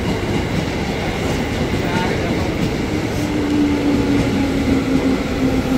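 A train rumbles and clatters steadily along the tracks close by.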